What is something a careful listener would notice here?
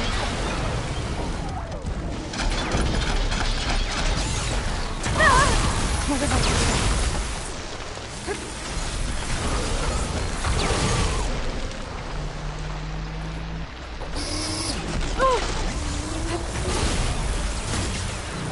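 Machines screech and roar.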